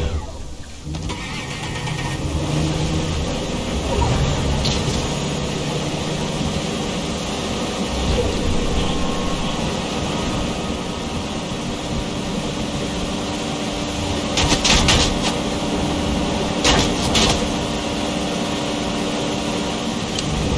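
Water splashes around a speeding boat.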